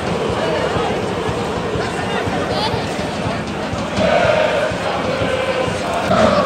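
A large crowd of fans chants and sings loudly in an open stadium.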